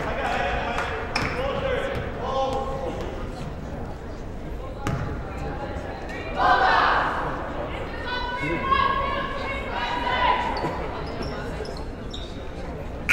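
Young women chatter and call out in a large echoing gym.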